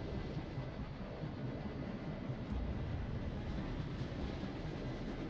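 A squadron of propeller planes drones steadily.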